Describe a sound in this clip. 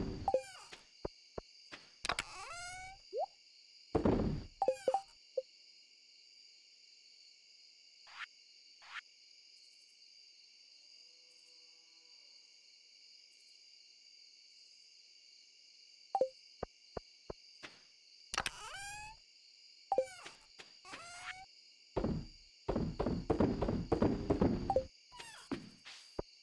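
Short game menu clicks and pops sound as menus open and close.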